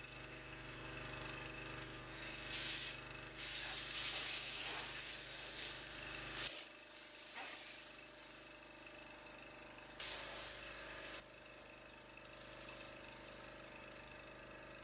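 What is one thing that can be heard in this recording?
A pressure washer hisses as it sprays water in bursts.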